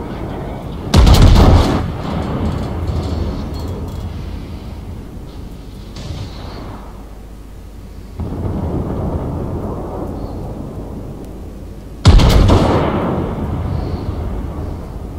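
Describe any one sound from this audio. Heavy ship guns fire with loud, deep booms that roll away slowly.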